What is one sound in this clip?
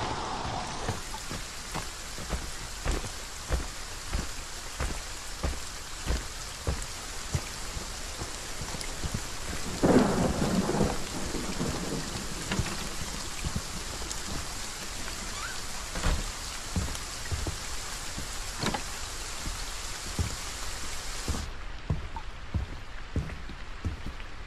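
Heavy footsteps thud steadily on the ground.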